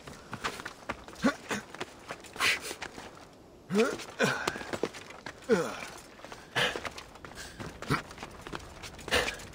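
Hands and feet scrape against rock during a climb.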